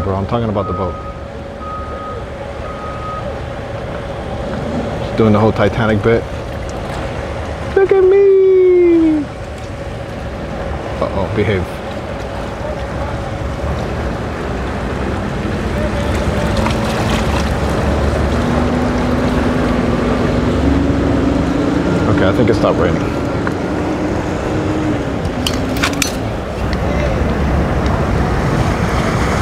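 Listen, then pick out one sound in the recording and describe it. Water laps and splashes against a hull.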